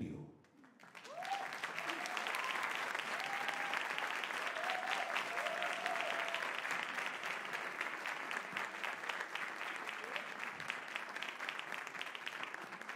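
An audience applauds loudly in a large room.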